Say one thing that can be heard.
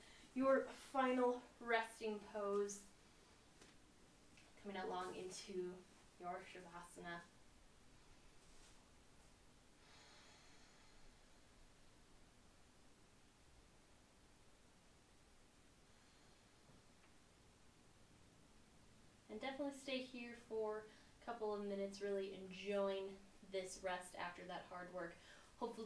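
A young woman speaks calmly and softly, as if guiding a relaxation exercise.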